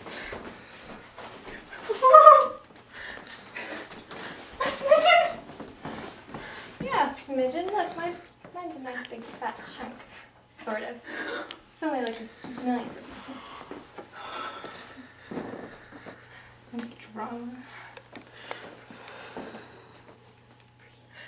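A young woman talks and laughs with animation close by.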